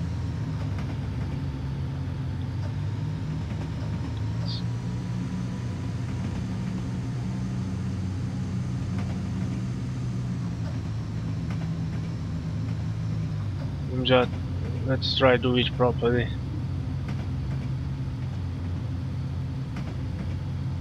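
Train wheels rumble along the rails.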